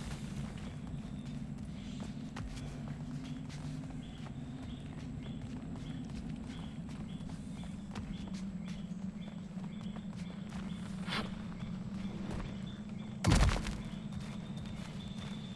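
Footsteps crunch slowly on rocky ground.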